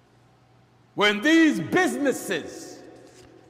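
A man speaks loudly and forcefully into a microphone, with a slight echo.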